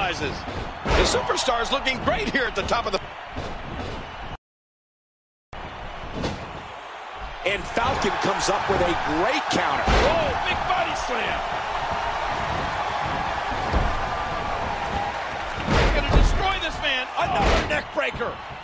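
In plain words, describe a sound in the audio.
Wrestlers' bodies thud heavily onto the ring mat.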